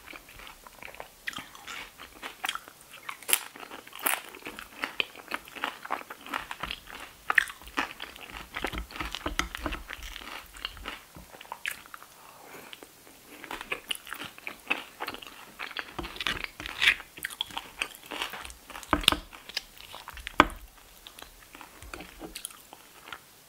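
A woman chews crunchy chips loudly close to a microphone.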